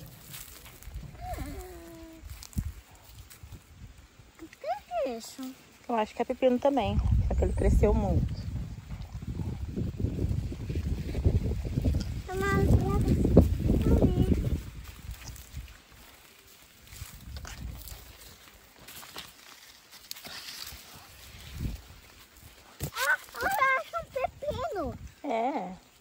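A small girl talks and babbles close by.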